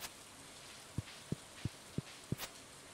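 Light footsteps tap at a steady pace.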